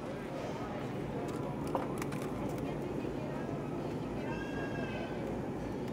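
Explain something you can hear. A plastic food container crinkles as a hand lifts it.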